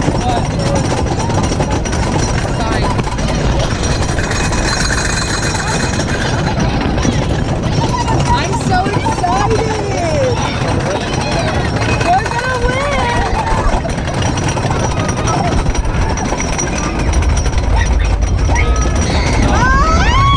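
A young woman shouts and screams with excitement close by.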